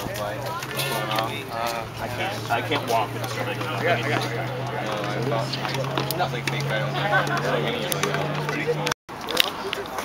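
Young men talk casually close by, outdoors.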